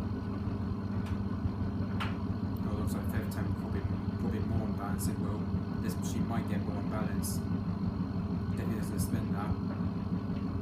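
Small items clink against a washing machine drum.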